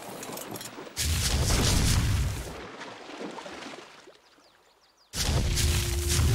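Heavy footsteps thud across sand.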